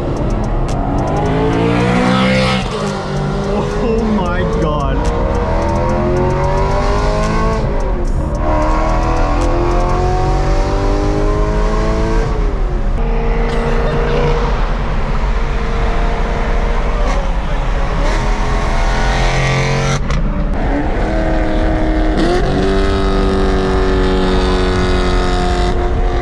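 A car engine roars loudly from inside the cabin, revving up and dropping in pitch with each gear change.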